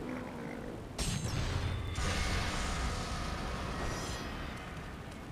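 A bright magical chime rings out and slowly fades.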